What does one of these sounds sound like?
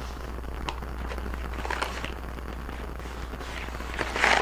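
A wrapper crinkles and rustles in hands.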